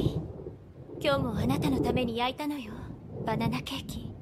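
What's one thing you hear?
A young woman speaks softly and gently.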